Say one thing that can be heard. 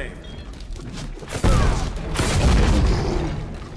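Weapons clash and thud in a close fight.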